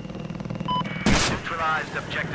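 A rocket launcher fires with a loud whoosh.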